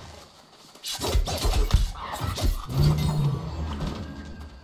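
Magic bursts crackle and whoosh.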